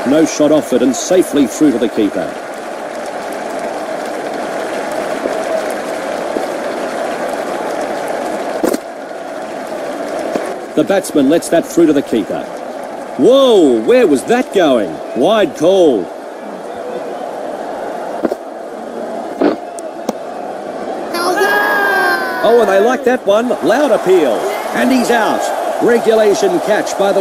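A large crowd murmurs steadily in a stadium.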